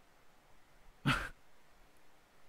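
A young man lets out a short, sharp vocal sound close to a microphone.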